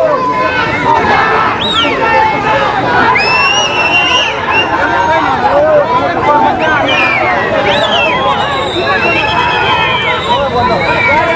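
Men shout slogans together.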